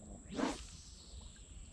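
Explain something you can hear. A fishing rod swishes through the air in a cast.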